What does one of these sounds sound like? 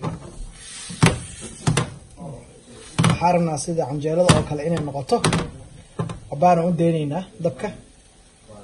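A metal spoon clicks and scrapes against a pan.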